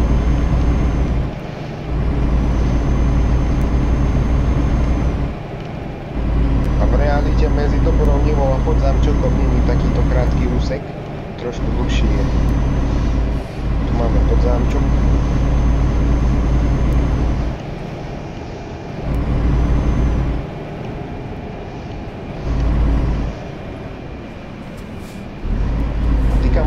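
A truck engine drones steadily, dropping off briefly now and then as the throttle eases.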